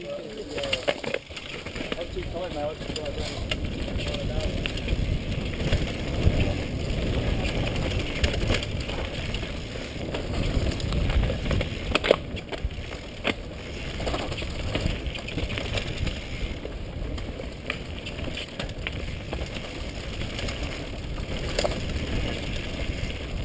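A bicycle frame rattles and clacks over bumps.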